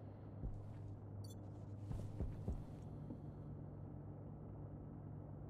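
Machinery hums steadily at a low pitch.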